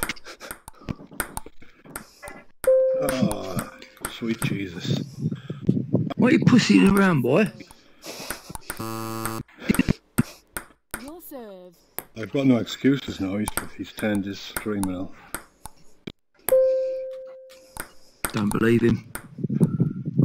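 A ping pong ball clicks sharply against paddles and a table.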